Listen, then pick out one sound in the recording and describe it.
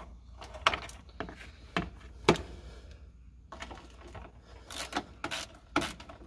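A metal tool clicks and clatters against car parts.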